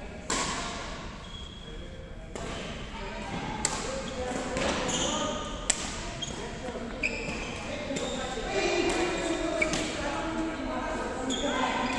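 Rackets smack a shuttlecock back and forth.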